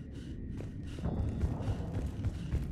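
Heavy boots thud on a metal floor at a quick pace.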